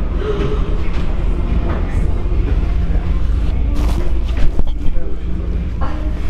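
A cable car cabin rattles and clunks as it passes a support tower.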